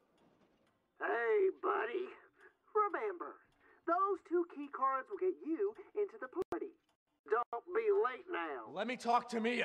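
A man speaks with animation through a telephone.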